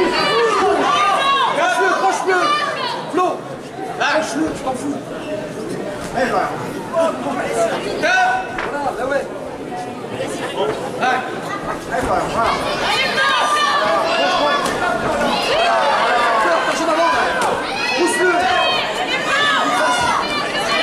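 A crowd of men and women shouts and cheers loudly in a large echoing hall.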